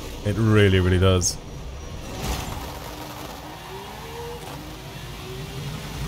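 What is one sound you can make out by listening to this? A sports car engine revs up at a start line.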